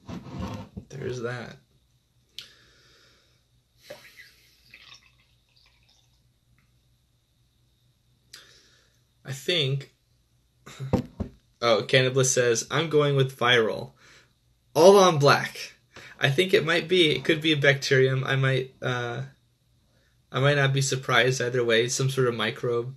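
A young man talks casually and close up, with pauses.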